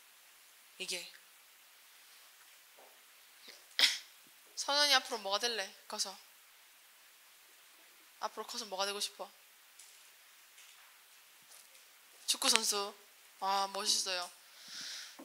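A young woman speaks calmly into a microphone in short phrases with pauses.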